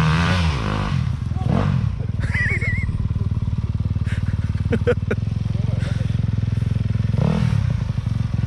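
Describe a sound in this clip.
Dirt bike engines idle and rumble at a distance.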